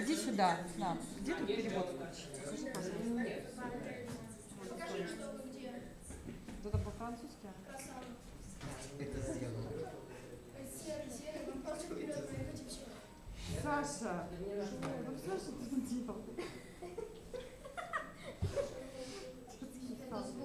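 Young people talk and chatter nearby.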